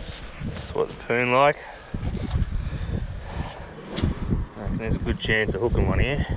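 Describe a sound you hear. A fishing reel whirs as it is wound.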